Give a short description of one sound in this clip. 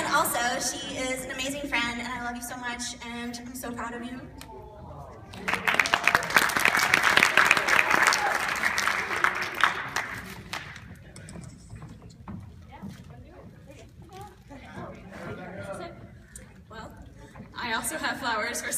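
A young woman speaks with feeling through a microphone in a large hall.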